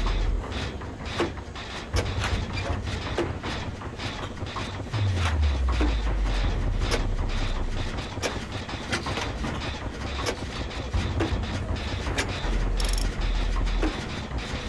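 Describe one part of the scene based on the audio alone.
Metal parts of a generator clank and rattle as they are repaired.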